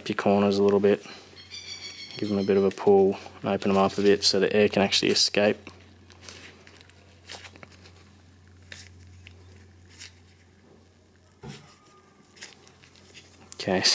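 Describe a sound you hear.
A hard plastic part rattles and clicks as it is handled.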